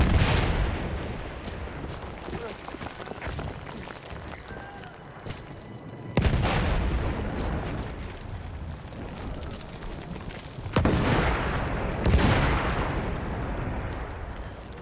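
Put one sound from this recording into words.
Explosions boom and rumble, echoing across open ground.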